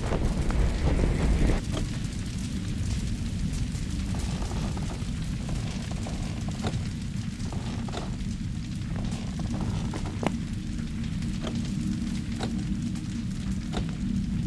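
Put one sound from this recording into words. Soft footsteps pad over mattresses.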